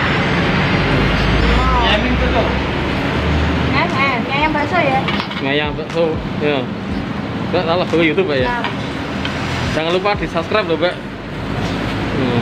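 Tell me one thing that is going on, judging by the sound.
Young men talk casually close by.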